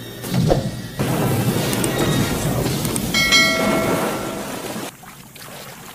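A body splashes heavily into water.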